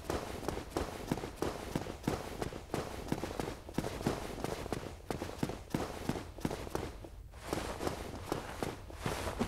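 Armoured footsteps thud quickly on a hard walkway.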